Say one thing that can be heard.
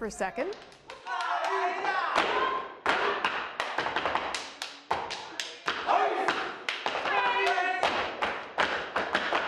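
Performers stomp and clap in a sharp, fast rhythm on a stage.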